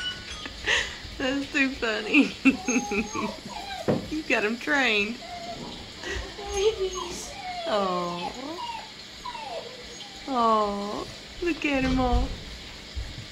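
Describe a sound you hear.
Puppies whine and yelp close by.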